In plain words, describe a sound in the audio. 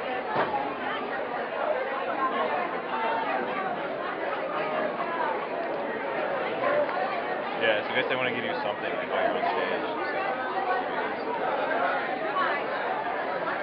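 A crowd of people chatters loudly all around.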